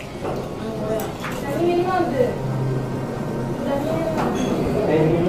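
Utensils clink against a plate.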